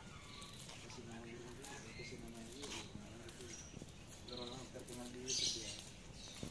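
A cockatoo chatters and mutters softly.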